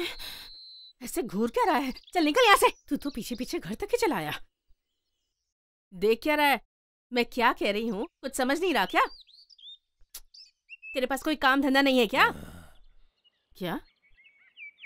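A woman speaks firmly nearby.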